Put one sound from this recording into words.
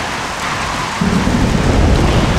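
A wooden gate rattles and creaks as it is forced.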